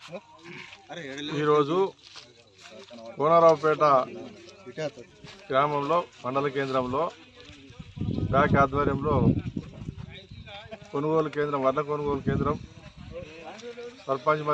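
A middle-aged man speaks steadily and firmly, close to a microphone, outdoors.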